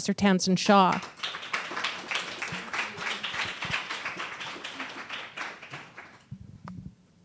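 Applause breaks out and slowly fades.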